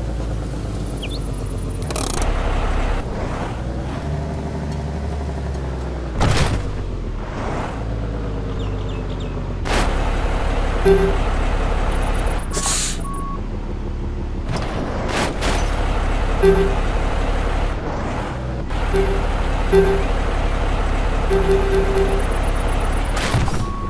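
A heavy off-road truck's engine rumbles as the truck drives.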